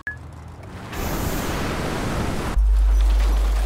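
A car's rocket booster blasts in a video game.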